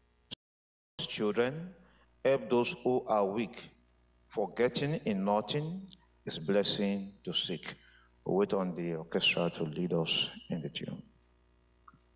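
A man speaks earnestly into a microphone, heard through a loudspeaker system.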